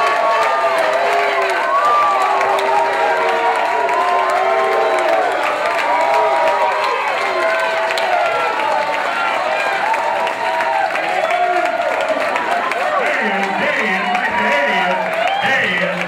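A live band plays music.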